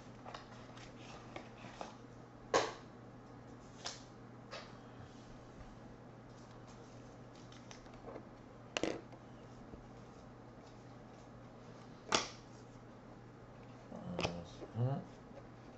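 Cards and plastic wrapping rustle and click as hands shuffle through them.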